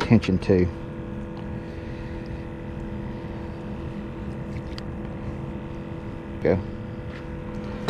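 An outboard motor idles steadily nearby.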